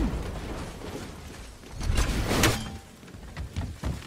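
Heavy footsteps thud on wooden planks.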